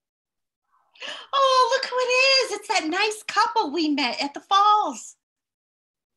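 A woman speaks loudly and with animation over an online call.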